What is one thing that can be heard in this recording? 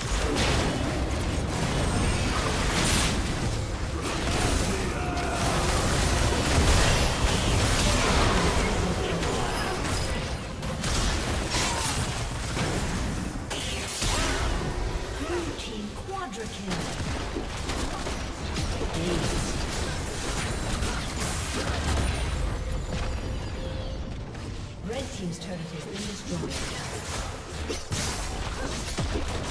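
Game spell effects crackle and blast in a busy fight.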